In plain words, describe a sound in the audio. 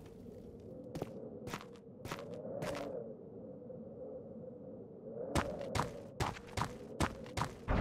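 Footsteps swish through grass outdoors.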